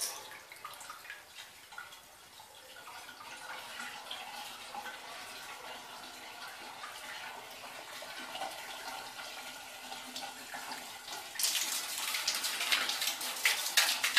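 Water gushes out and splashes onto a hard floor, getting louder near the end.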